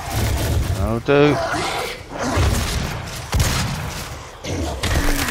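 A monster snarls and growls.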